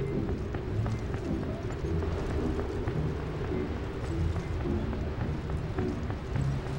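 Quick footsteps patter on dry ground.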